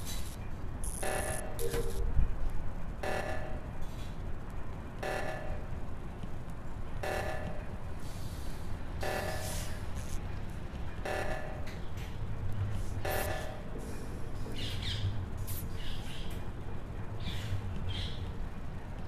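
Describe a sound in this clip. Game footsteps tap steadily as a small character walks.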